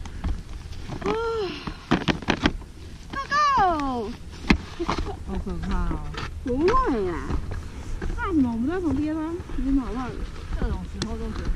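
A woman speaks nearby with animation.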